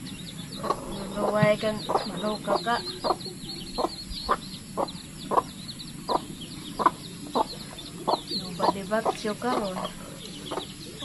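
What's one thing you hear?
A young woman speaks softly up close.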